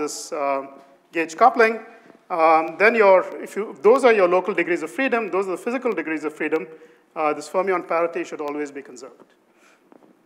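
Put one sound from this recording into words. A man lectures with animation through a microphone in a large room.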